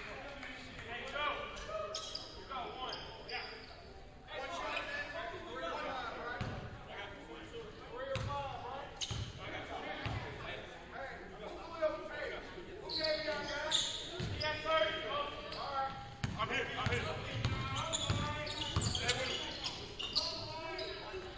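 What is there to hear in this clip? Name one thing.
Young players shout to each other across the court.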